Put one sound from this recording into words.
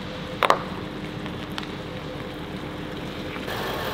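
A car engine hums as the car pulls away.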